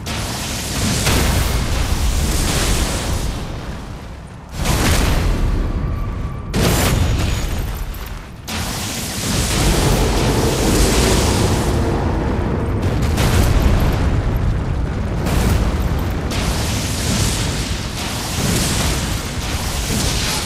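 Lightning cracks and rumbles in bursts.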